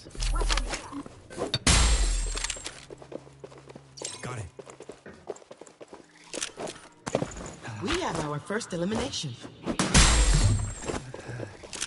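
A blade swishes through the air.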